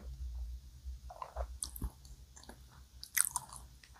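A young woman sips milk and swallows close to a microphone.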